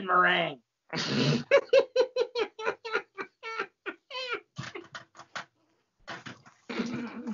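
A man laughs loudly in bursts over an online call.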